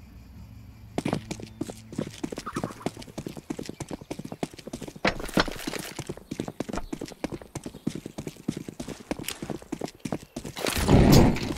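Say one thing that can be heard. Quick footsteps patter on stone pavement.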